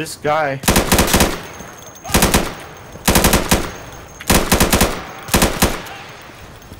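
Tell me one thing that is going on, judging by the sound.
A rifle fires rapid bursts of gunshots that echo outdoors.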